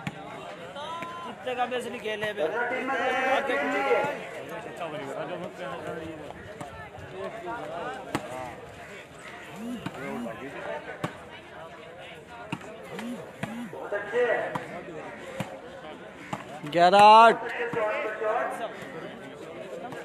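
A large outdoor crowd shouts and cheers from a distance.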